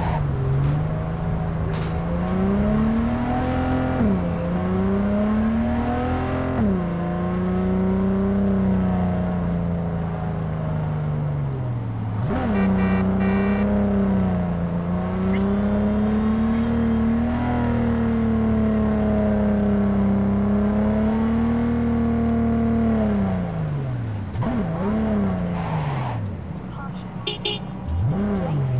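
A car engine roars steadily, rising and falling in pitch as the car shifts gears.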